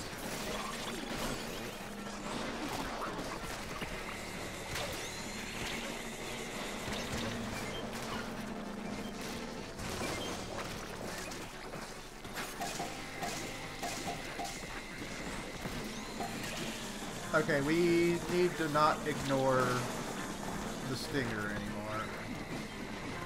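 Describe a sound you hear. Splashy, squelching game sound effects pop and burst.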